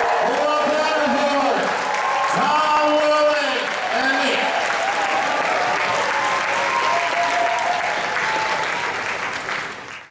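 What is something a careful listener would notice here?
Several people clap their hands in a large hall.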